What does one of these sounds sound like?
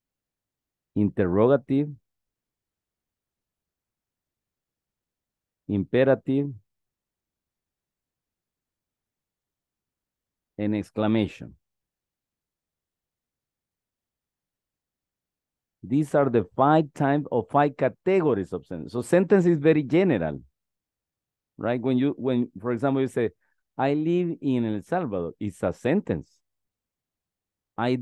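A man speaks calmly through an online call microphone, pausing between phrases.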